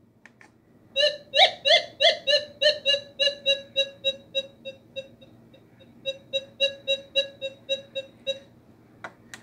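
A metal detector beeps rapidly in a high, ringing tone.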